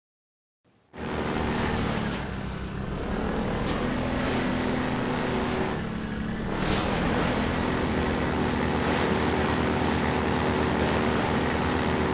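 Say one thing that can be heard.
A buggy engine hums and revs steadily.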